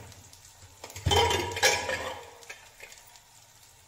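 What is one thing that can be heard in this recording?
A metal pressure cooker lid clanks as it is lifted off.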